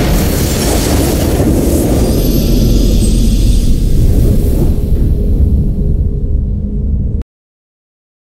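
A triumphant game fanfare booms and swells, then cuts off.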